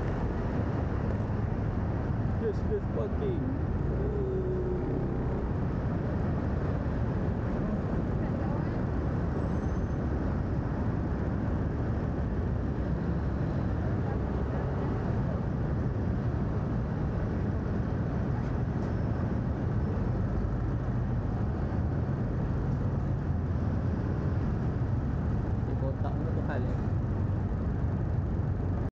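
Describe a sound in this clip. A motorbike engine idles steadily close by, in a large echoing underground space.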